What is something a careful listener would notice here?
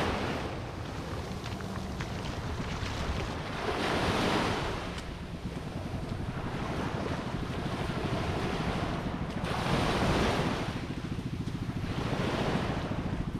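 Small waves wash up and break on the shore, swelling and fading.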